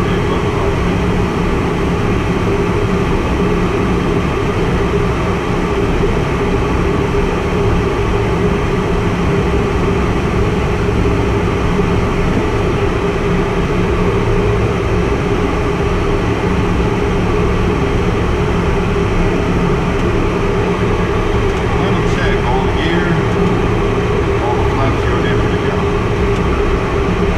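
A small plane's engine drones steadily from inside the cockpit.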